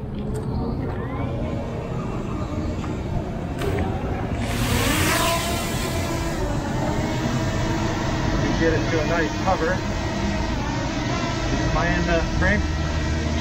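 A small drone's propellers whir with a high, steady buzz.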